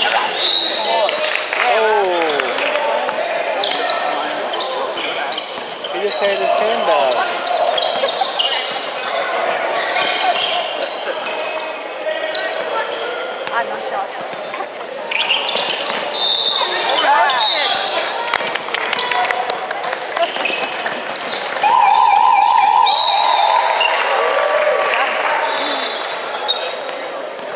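Young players shout to each other across an echoing hall.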